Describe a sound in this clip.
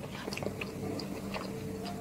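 A woman's fingers squish through rice on a plate.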